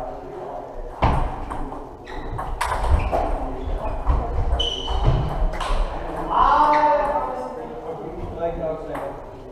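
A ping-pong ball clicks back and forth on paddles and a table.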